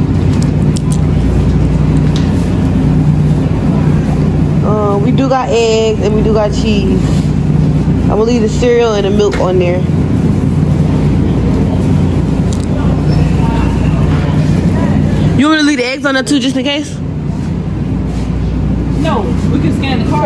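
A refrigerated display case hums steadily.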